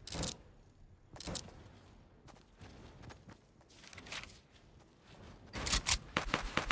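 Game building sound effects clatter in short, sharp bursts.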